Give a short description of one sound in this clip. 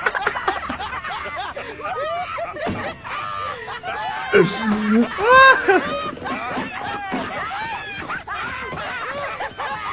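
People laugh hard in a played-back clip.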